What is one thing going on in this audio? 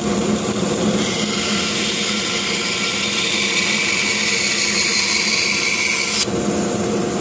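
A band saw blade cuts through a block of wood with a hissing rasp.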